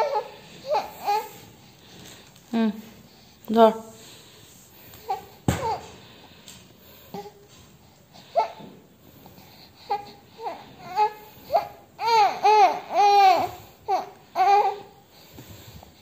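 A baby coos and babbles up close.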